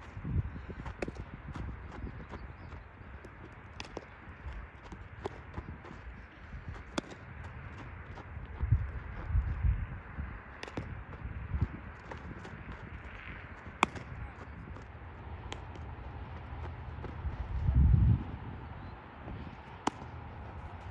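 A softball smacks into a leather glove.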